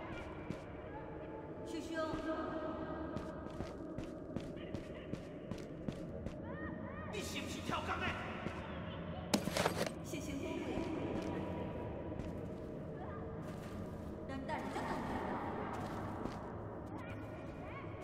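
Small footsteps tap on a hard floor.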